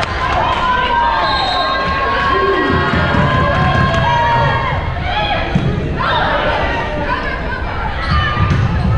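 Spectators and players call out in a large echoing gym.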